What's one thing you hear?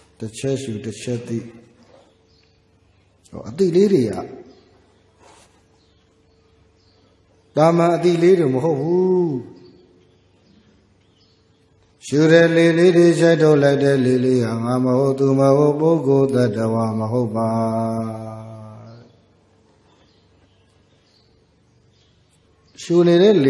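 A man chants slowly into a microphone, in melodic phrases with pauses.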